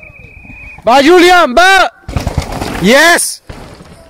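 A mountain bike rattles and skids over rough dirt.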